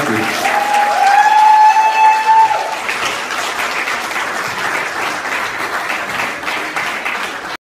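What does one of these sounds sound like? An acoustic guitar is strummed loudly.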